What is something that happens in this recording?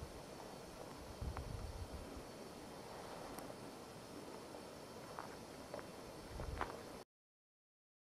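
Wind blows steadily across open ground, with a few low gusts.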